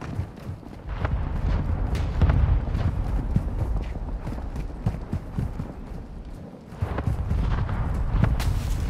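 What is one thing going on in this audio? Footsteps run quickly over grass and rough ground.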